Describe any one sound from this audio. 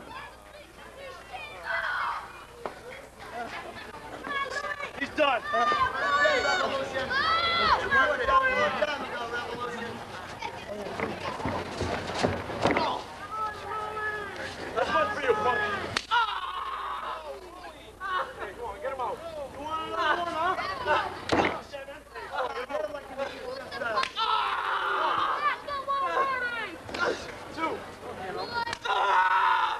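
A crowd cheers and yells.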